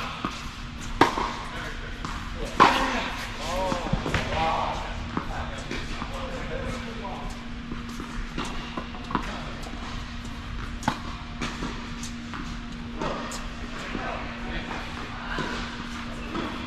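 Tennis balls are struck with rackets in a large echoing hall.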